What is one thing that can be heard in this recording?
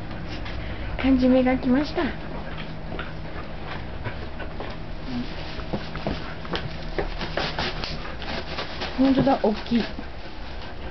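A dog yelps and whines close by.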